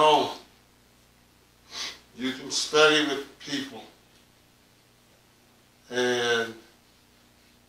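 A man reads out calmly into a microphone, in short phrases with pauses.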